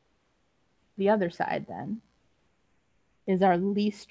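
A woman speaks calmly into a microphone, as if lecturing.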